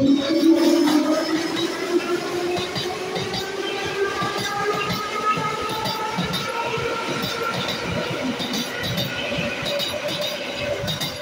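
A train rolls past on the rails, its wheels rumbling and clattering.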